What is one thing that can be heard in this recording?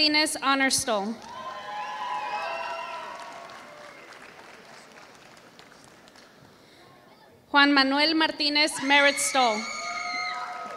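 A woman speaks loudly through a loudspeaker, echoing in a large hall.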